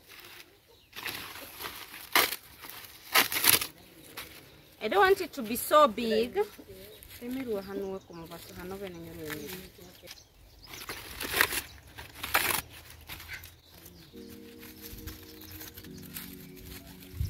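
Dry leaves rustle and crackle as they are torn.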